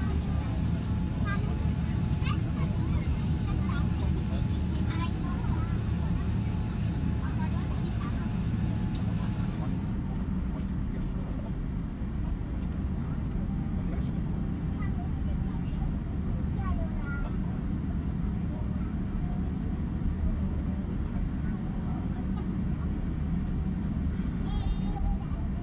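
A jet engine hums and rumbles steadily.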